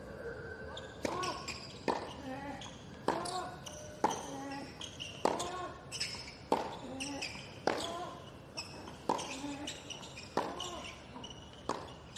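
A tennis ball is struck sharply back and forth in a long rally.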